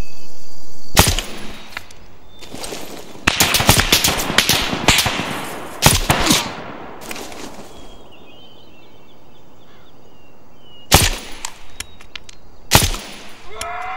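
Rifle shots crack loudly, one at a time.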